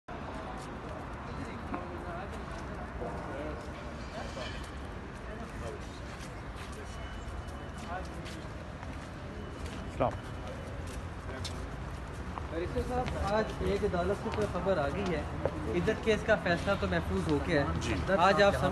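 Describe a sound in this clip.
Several people walk with shoes tapping on pavement.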